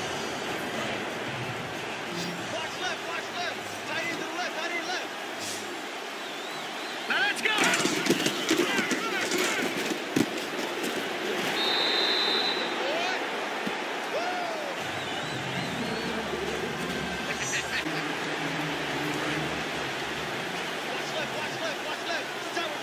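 A stadium crowd roars and cheers, swelling louder partway through.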